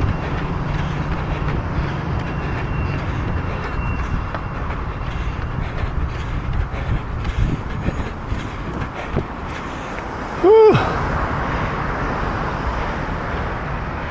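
Traffic passes steadily on a nearby road, outdoors.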